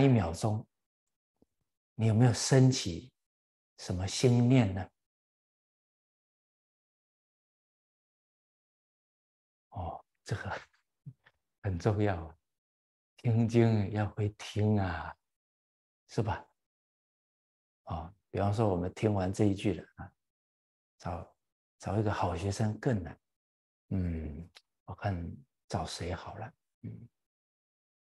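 An elderly man speaks calmly and warmly into a close microphone, with pauses.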